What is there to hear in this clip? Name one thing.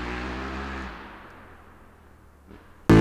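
A motorcycle engine roars past nearby and fades into the distance.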